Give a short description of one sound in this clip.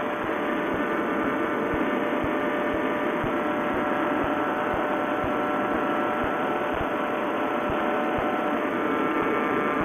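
A propeller engine drones steadily close by.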